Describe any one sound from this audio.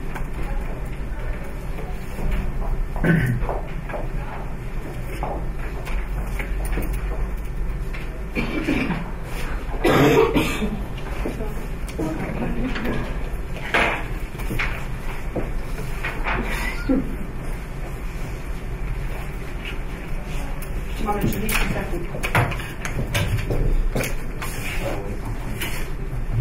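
Men and women talk quietly among themselves in a room.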